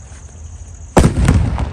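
A loud firework burst explodes close by.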